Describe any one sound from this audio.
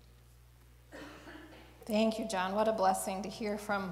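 A woman speaks into a microphone in an echoing hall.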